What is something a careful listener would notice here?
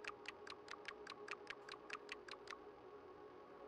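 Short interface clicks tick rapidly in a row.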